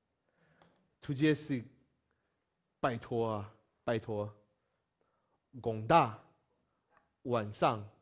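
A young man speaks clearly into a close microphone, in short phrases with pauses, as if teaching.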